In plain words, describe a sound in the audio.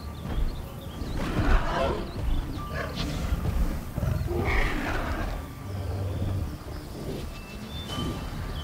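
A large dinosaur growls and snorts.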